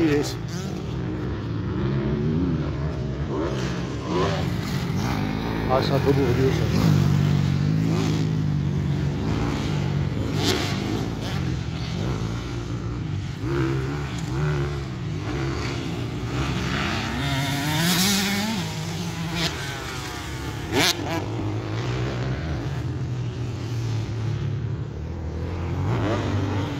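Several motocross bikes rev hard and shift gears around a dirt track, some distance away.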